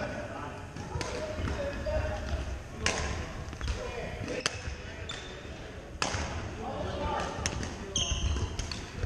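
Rackets hit shuttlecocks with sharp pops in a large echoing hall.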